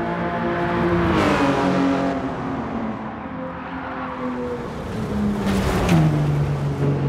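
A car passes close by with a rushing whoosh.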